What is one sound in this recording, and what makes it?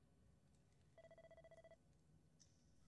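Quick electronic blips tick rapidly in a short burst.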